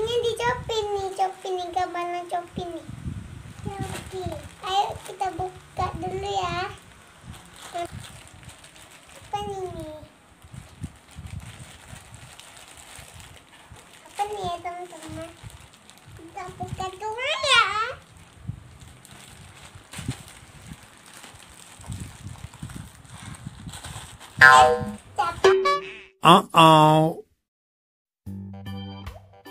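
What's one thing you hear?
A plastic package crinkles and rustles in small hands.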